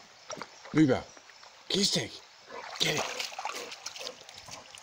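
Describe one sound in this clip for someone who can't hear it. A dog splashes in shallow water.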